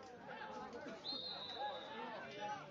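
A referee's whistle gives a short blast.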